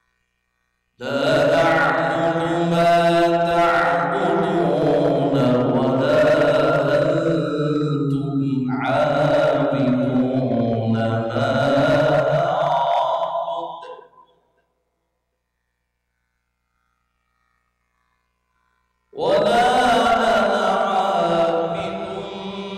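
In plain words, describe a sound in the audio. A man chants in a long, drawn-out melodic voice through a microphone, echoing in a large hall.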